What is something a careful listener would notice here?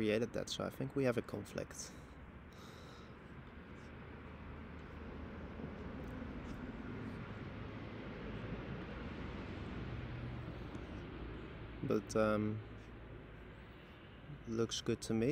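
A young man talks calmly into a nearby microphone.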